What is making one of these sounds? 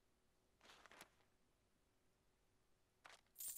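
A game menu opens with a short swish.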